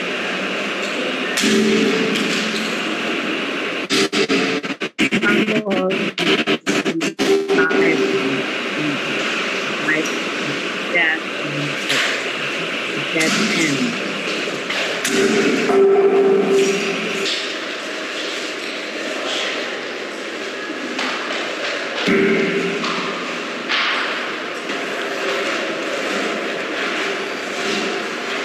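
Hands rub and scrape roughly against a stone block.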